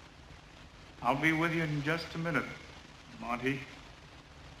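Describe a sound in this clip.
A man answers briefly in a calm voice.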